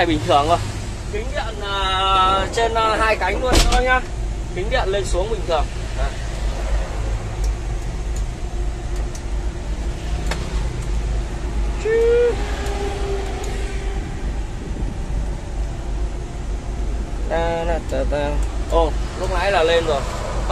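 A truck engine rumbles steadily inside the cab.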